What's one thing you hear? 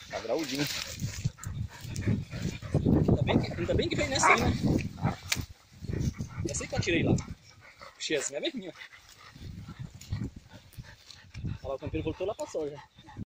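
Leaves and grass rustle as dogs move through them.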